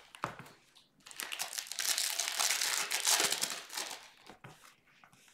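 Foil card wrappers rustle and crinkle as hands handle them.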